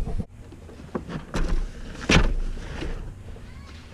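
A bag thumps down into a car's boot.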